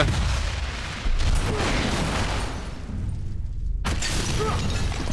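Fire roars after an explosion.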